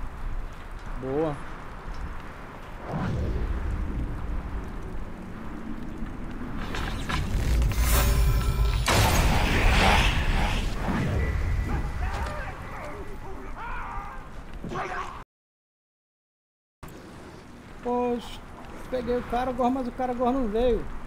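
A middle-aged man talks calmly into a microphone.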